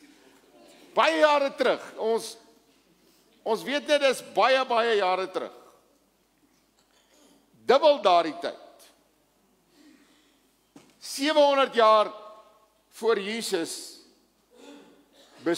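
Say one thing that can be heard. An elderly man speaks with animation through a microphone in a large hall, pausing between phrases.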